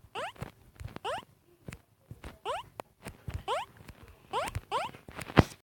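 Soft thuds from a video game sound between the chirps.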